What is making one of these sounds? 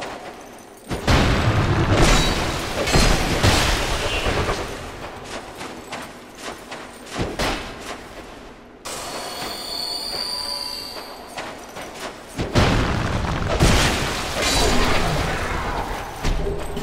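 Metal weapons clash and strike hard in a fight.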